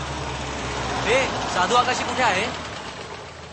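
A man calls out from inside a car.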